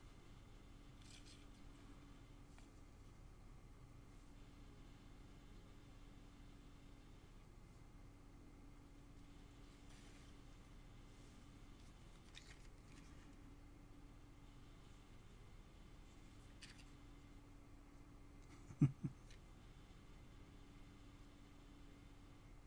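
A needle punches softly through taut cloth.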